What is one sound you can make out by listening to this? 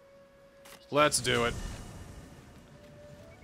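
A magic spell shimmers and whooshes.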